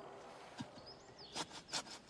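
Dry grass rustles as a man falls onto the ground.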